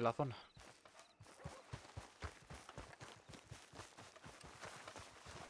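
Quick footsteps run over soft grass.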